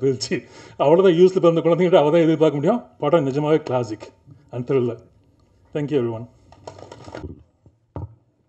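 A middle-aged man speaks animatedly into a microphone.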